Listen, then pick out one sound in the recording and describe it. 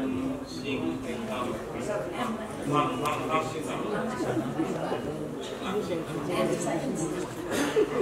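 A man speaks through a loudspeaker in a large hall.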